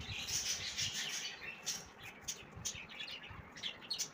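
Fingers rustle through crisp snacks in a bowl.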